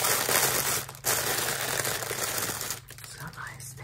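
Plastic bubble wrap crinkles and rustles close by.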